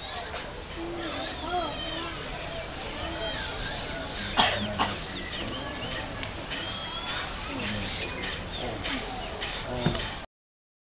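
Men and children talk quietly nearby outdoors.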